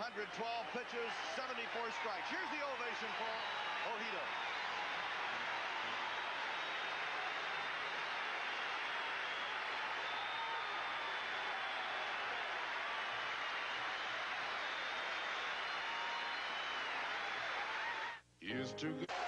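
A large crowd cheers and roars loudly in a stadium.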